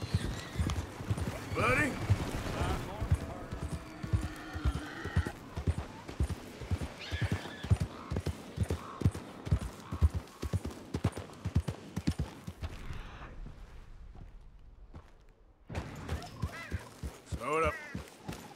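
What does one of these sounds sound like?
A horse's hooves thud steadily on a dirt trail.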